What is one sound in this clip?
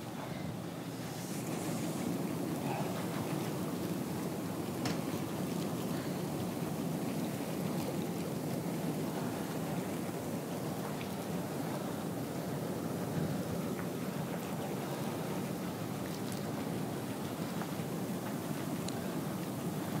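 Water bubbles and churns in a hot tub.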